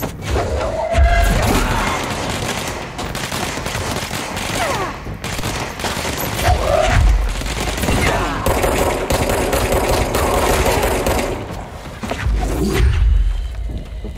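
A thrown object smashes with a heavy crash.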